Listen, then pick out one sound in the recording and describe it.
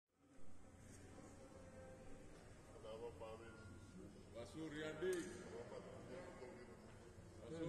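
Men and women murmur and talk in a large, echoing room.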